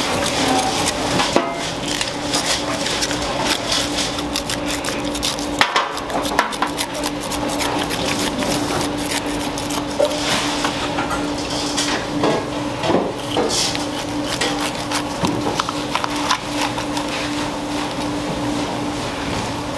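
A knife scrapes and slices through fish skin and flesh.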